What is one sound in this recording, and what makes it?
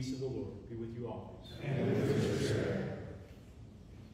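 A middle-aged man speaks calmly through a microphone in a reverberant hall.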